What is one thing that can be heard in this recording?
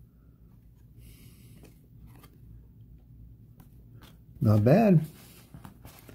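Trading cards rustle and slide against each other in a person's hands.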